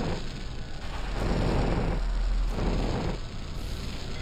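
Flames burst and roar with a whoosh.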